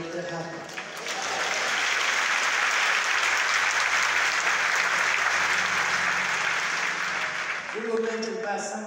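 A large audience claps and cheers loudly.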